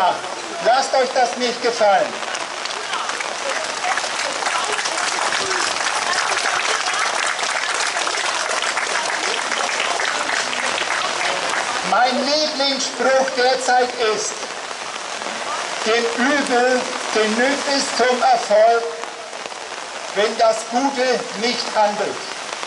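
A man speaks calmly through a microphone outdoors.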